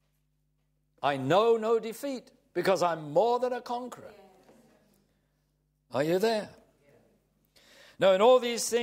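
An elderly man speaks calmly and clearly into a microphone.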